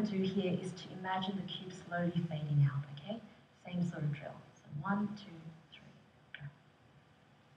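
A man speaks calmly through a loudspeaker.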